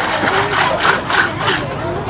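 Water splashes and drips from a basket of shells.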